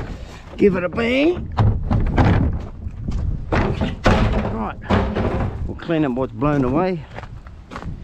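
A plastic bin lid bangs open and shut.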